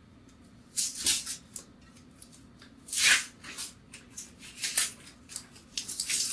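Paper wrapping crinkles and tears as it is peeled off a bottle.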